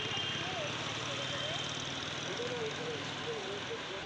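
A motorcycle engine hums as the bike rides past nearby.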